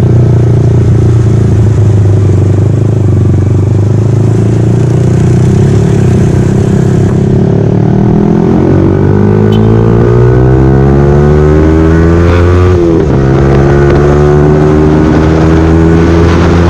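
A motorcycle engine hums loudly close by, revving up and shifting gears.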